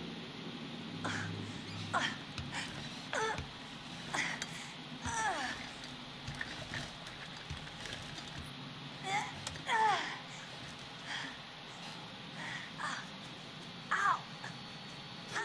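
A young woman pants and groans with strain, close by.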